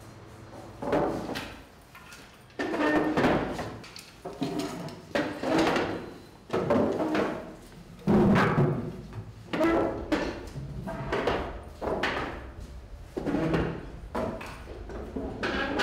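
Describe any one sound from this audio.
Wooden chairs knock and scrape as they are lifted and set down.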